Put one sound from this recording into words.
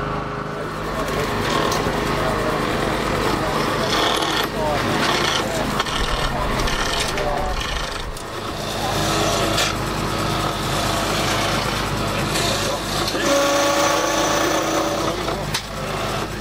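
A wood lathe hums steadily as it spins.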